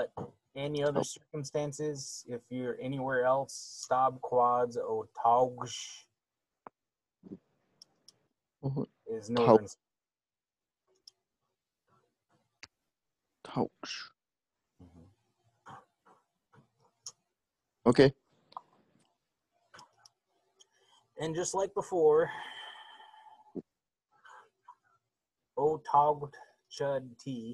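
A man speaks slowly and clearly over an online call, pausing between words.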